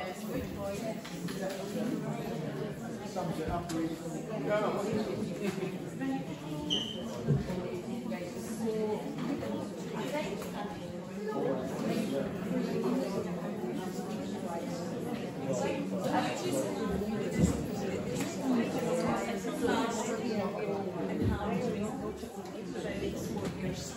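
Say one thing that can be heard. Many people murmur and talk over one another in an echoing hall.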